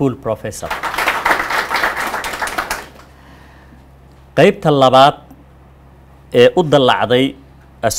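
A man reads out a speech calmly into a microphone.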